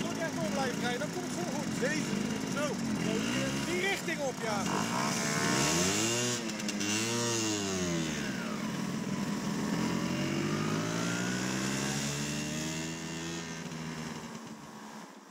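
Scooter engines hum close by, rising and falling in pitch as they rev.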